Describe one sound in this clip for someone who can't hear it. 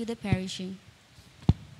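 A young woman speaks briefly into a microphone in an echoing hall.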